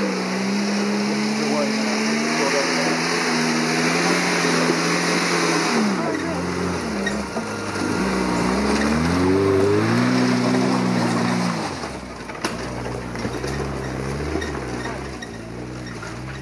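A small car engine revs hard under load as the car climbs a steep muddy track.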